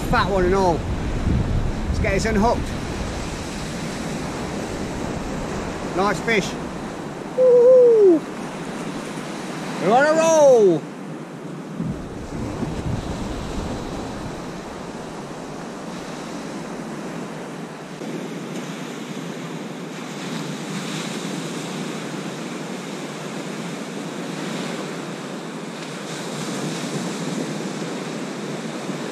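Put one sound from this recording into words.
Waves break and wash up a sandy beach outdoors.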